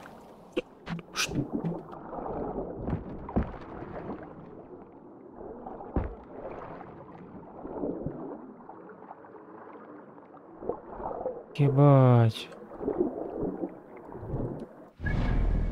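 Water bubbles and swirls, muffled as if heard underwater.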